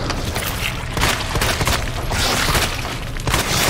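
A handgun fires several shots, echoing in a hard-walled space.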